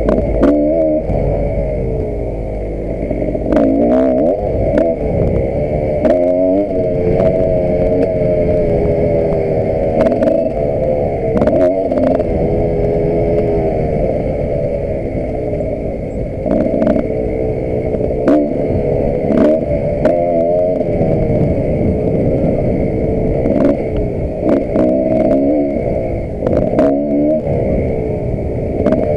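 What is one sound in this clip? The bike's suspension knocks and rattles over bumps.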